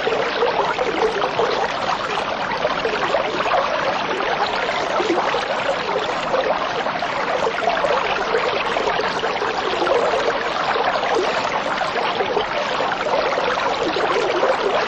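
Water bubbles and gurgles steadily close by.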